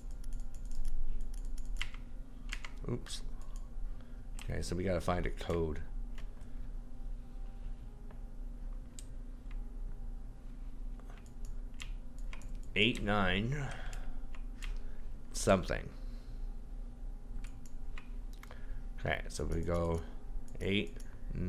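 A combination lock dial clicks as it turns.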